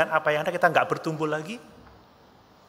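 A man speaks with animation into a microphone in an echoing hall.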